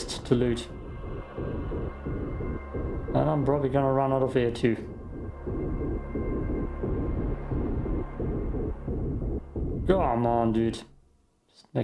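Water bubbles and rumbles steadily underwater.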